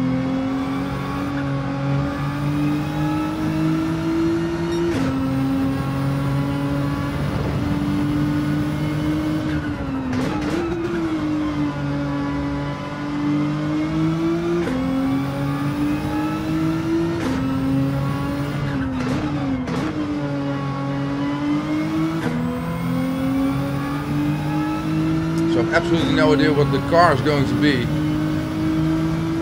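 A racing car engine revs high, rising through the gears and dropping as it brakes into corners.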